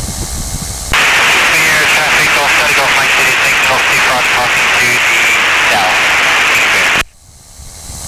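Wind rushes loudly past in flight.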